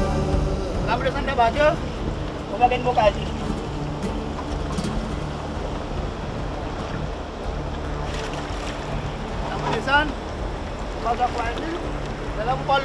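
A middle-aged man speaks with animation close by, outdoors.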